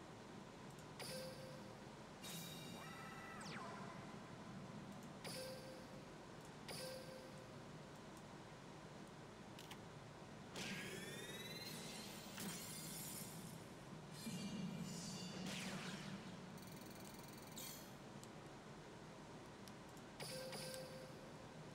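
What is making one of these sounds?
Short electronic game chimes ring out now and then.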